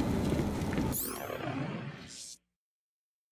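A menu opens with a bright electronic swoosh.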